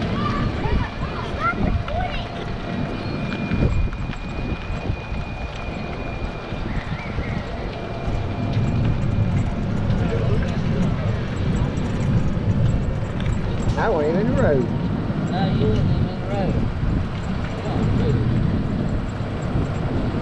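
Wind buffets loudly while riding outdoors.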